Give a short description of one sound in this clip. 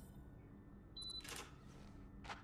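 A card reader gives a short beep.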